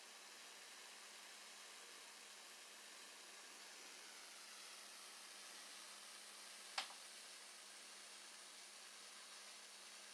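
A small electric spark hisses and buzzes steadily.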